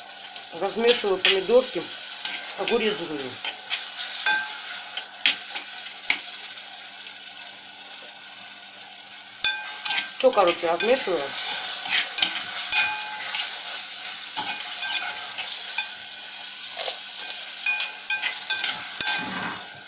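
A spoon stirs and scrapes inside a pot.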